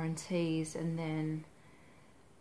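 A woman speaks calmly and close to the microphone.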